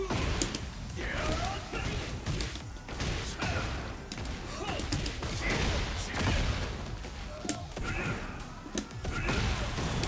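Fighters grunt and shout as they strike.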